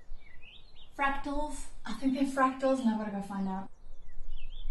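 A woman speaks loudly and with animation close by.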